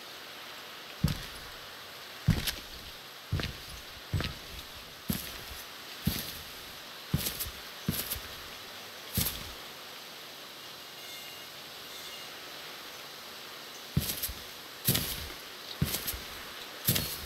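Footsteps rustle slowly through tall grass.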